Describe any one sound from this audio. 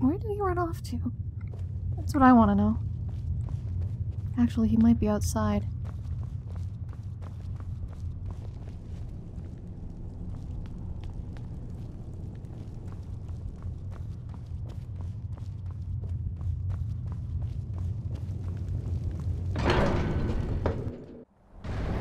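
Footsteps in armour tread on stone in a hollow, echoing space.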